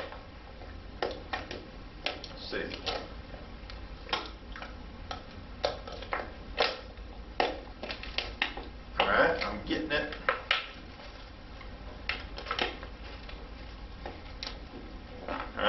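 Plastic crinkles and clicks as a bottle is handled.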